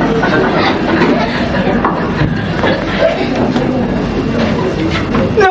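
A woman speaks with animation at a distance in a room.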